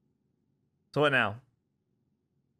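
A young man lets out a short, loud exclamation close by.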